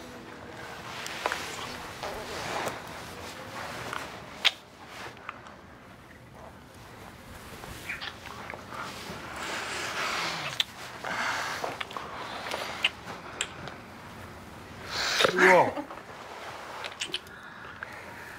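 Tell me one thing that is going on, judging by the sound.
A woman breathes heavily and sighs close by.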